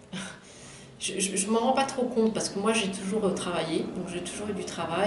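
A middle-aged woman speaks calmly, close to a microphone.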